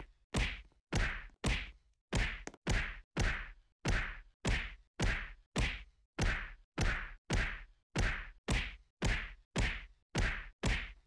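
A game's punching sound effect thuds over and over at a steady, quick pace.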